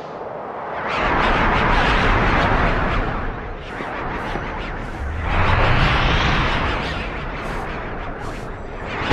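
Dark tendrils burst up from the ground with a loud rushing whoosh.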